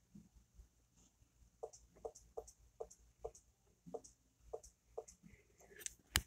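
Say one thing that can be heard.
Fingertips tap on a touchscreen.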